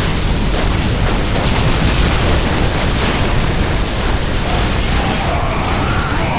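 Guns fire in a battle.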